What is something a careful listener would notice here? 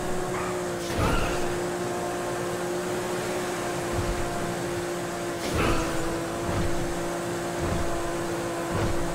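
A car engine hums steadily at speed.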